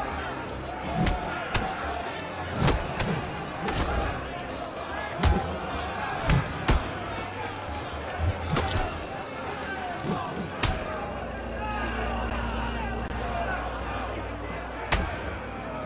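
Fists land heavy punches in a brawl.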